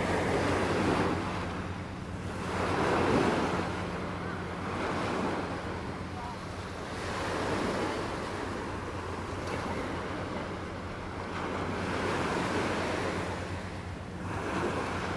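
Small waves wash and break gently on a sandy shore.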